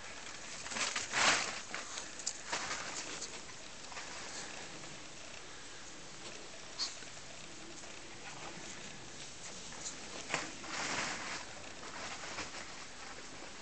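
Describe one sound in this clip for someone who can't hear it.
A Tibetan spaniel and a cat scuffle and roll on grass.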